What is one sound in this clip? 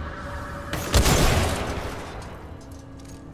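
An electric blast crackles and roars.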